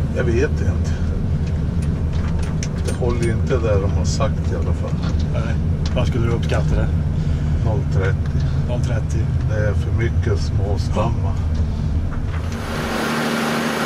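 A diesel engine rumbles loudly and steadily inside a machine cab.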